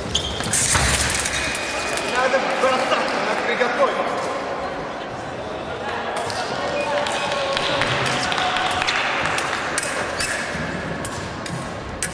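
Fencers' shoes squeak and thud on a hard floor.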